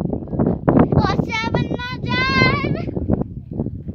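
A young child calls out in a high, excited voice close by.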